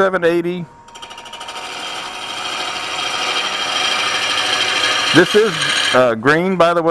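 A wood lathe spins while a chisel cuts into the turning wood with a rising, steady scraping hiss.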